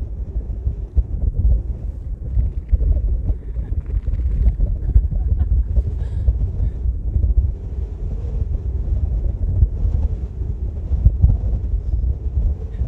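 Strong wind buffets loudly across an open hilltop.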